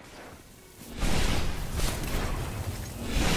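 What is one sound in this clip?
A blast bursts with a loud whoosh.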